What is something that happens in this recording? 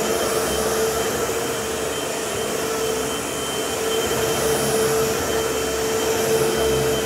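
An upright vacuum cleaner rolls back and forth over a rug.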